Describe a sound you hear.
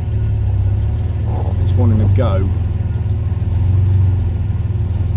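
A car engine hums steadily at idle.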